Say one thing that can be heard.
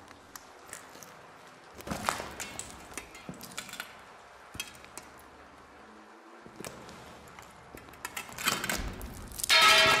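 Heavy footsteps clank on metal stairs.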